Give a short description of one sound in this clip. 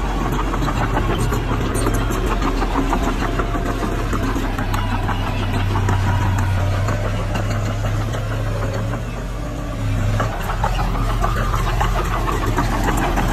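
Bulldozer tracks clank and squeak as they crawl over dirt.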